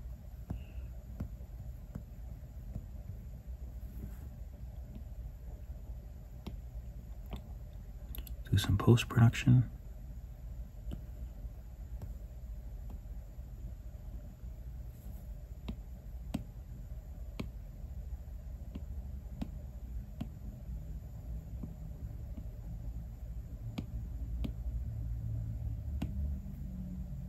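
A stylus taps lightly on a glass tablet surface.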